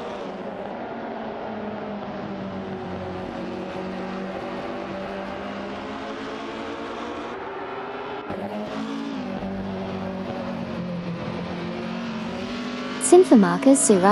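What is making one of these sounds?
Racing car engines drone and whine steadily, rising and falling in pitch.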